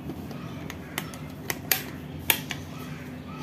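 A wall switch clicks a few times.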